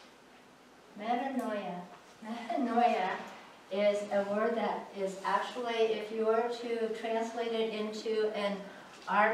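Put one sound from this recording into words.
A woman talks clearly and calmly, close by.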